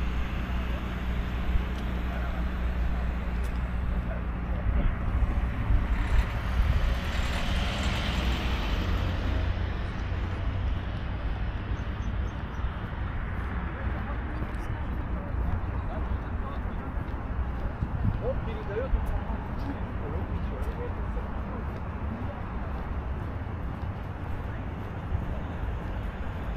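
Traffic hums steadily along a wide road outdoors.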